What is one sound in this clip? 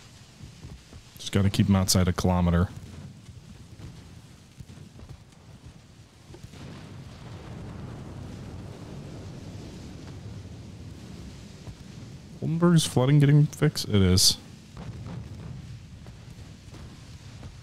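Waves wash steadily on open sea.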